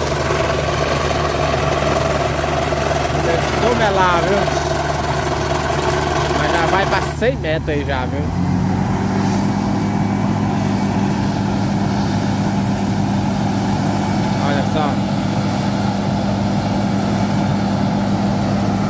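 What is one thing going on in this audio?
A drilling rig engine runs with a steady loud drone.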